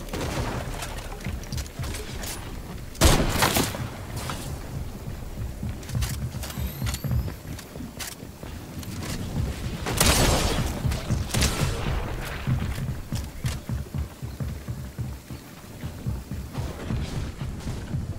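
A pickaxe repeatedly strikes and smashes through building walls.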